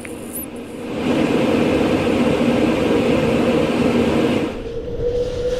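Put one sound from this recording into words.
An air conditioner blows air with a steady whoosh.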